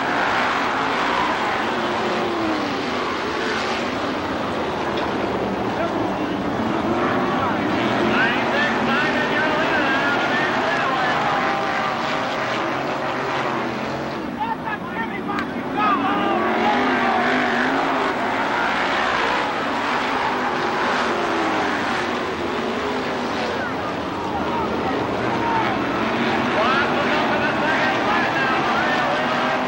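Race car engines roar and whine as cars speed around a dirt track.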